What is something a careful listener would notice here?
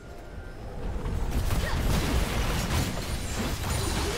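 Magic spells crackle and burst in a fast, busy fight.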